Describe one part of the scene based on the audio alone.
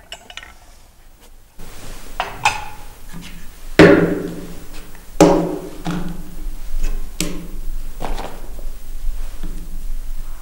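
A mechanical device clunks and clicks as keys are pressed.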